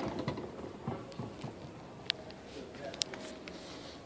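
A small fridge door clicks open.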